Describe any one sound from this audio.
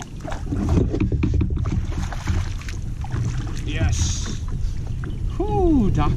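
A fish splashes in the water next to a boat.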